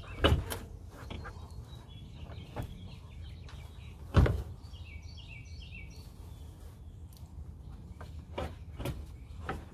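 Hands knock and tap against thin sheet metal of a car.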